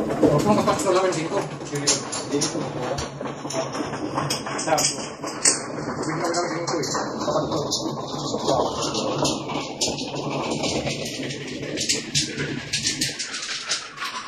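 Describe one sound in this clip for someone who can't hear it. Plastic tiles clack and rattle as hands shuffle and stack them on a table.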